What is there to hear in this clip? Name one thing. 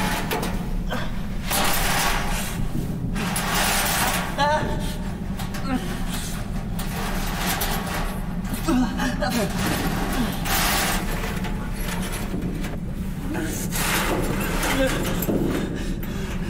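Clothing scrapes and knocks against metal as a man crawls.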